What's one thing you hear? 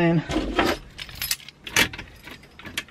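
Car keys jingle in a hand.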